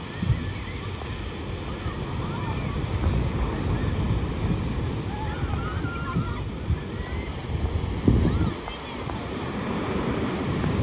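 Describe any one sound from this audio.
Wind blows across the open beach.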